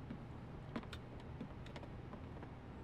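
Footsteps tap on a wooden floor.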